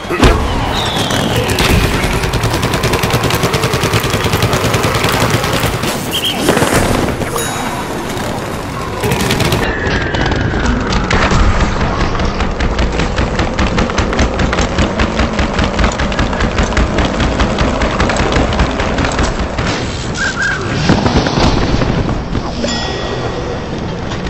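A cannon fires in rapid bursts.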